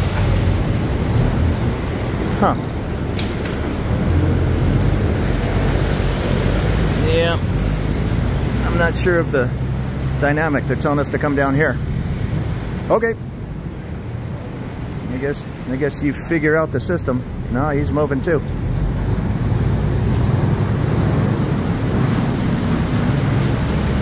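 A boat engine rumbles loudly nearby.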